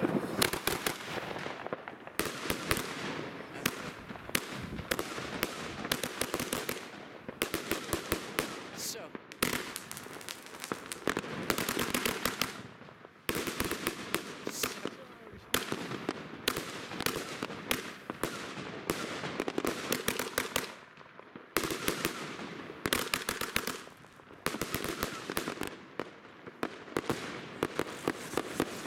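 Fireworks bang and crackle rapidly, close by.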